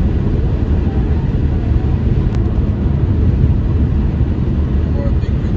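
Road noise rumbles inside a car driving on a highway.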